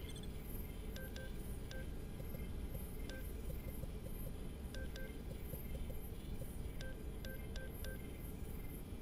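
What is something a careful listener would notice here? Short electronic beeps chirp in quick series.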